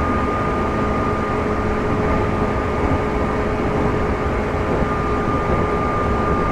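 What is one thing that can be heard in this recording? An electric train motor hums with a steady whine.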